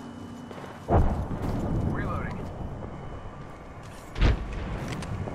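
Gunshots bang sharply a few times.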